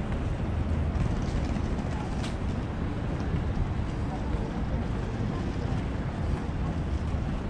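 Footsteps tap on paving.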